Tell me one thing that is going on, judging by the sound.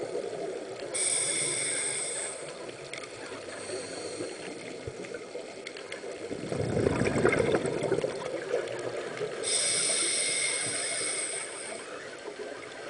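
Air bubbles from a diver's breathing burst and gurgle loudly underwater.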